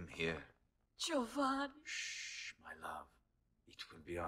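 A woman speaks weakly, close by.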